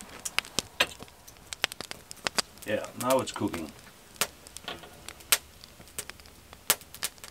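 A small wood fire crackles and pops close by.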